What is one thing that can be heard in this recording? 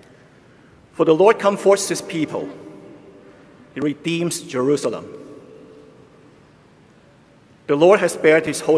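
A man speaks calmly into a microphone in a large echoing hall, with pauses between phrases.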